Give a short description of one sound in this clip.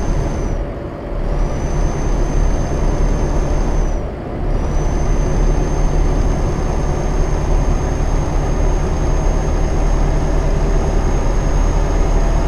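Tyres roll on a highway with a steady rush.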